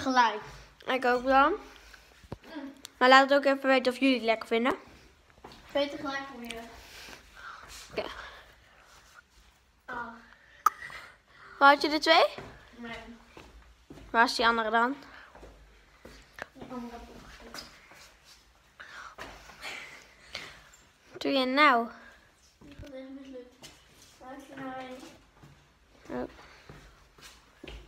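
A young girl talks close up with animation.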